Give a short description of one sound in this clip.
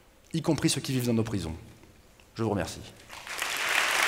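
A young man speaks into a microphone in a large hall.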